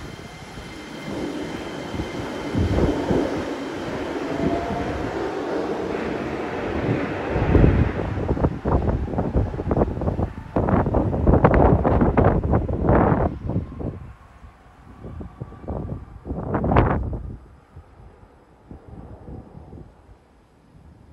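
A train hums and whirs as it pulls away from a platform and fades into the distance.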